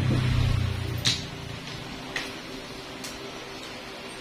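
A small nail clipper snips with sharp clicks.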